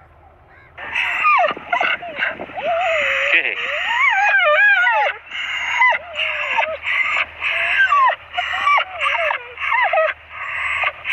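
A dog yelps and whines close by.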